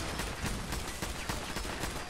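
Electricity crackles and snaps loudly.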